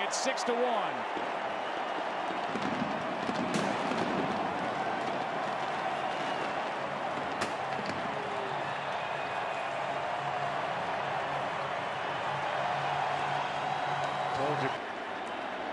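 A large crowd cheers loudly in a big stadium.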